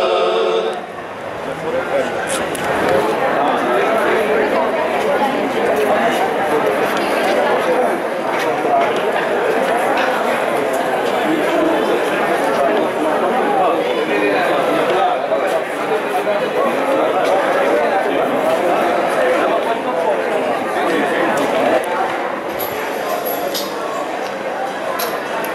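Several men chatter and talk at once nearby, outdoors.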